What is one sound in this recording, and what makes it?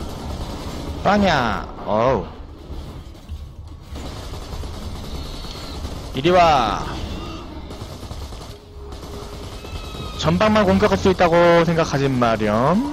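Monsters snarl and shriek close by.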